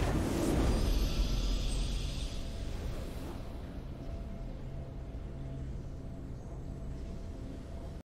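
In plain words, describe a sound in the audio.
A game's victory fanfare swells and rings out.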